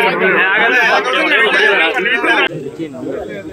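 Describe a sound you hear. A crowd of men cheers and shouts loudly close by.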